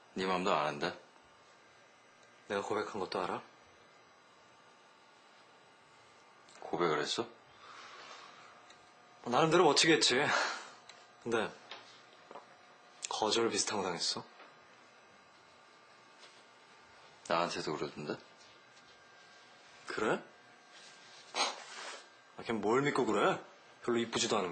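A young man talks calmly up close, in short bursts.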